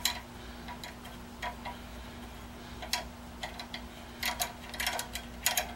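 Small metal parts clink and tap together in someone's hands.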